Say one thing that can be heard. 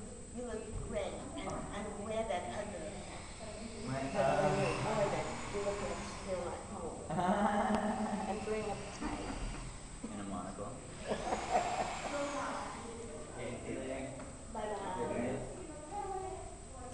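An elderly man talks and laughs close by.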